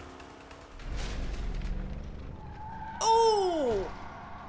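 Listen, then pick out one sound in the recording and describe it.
A car smashes through a wooden barrier with a crack.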